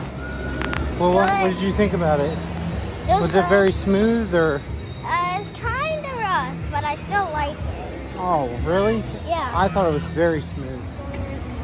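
A young girl talks close by, with animation.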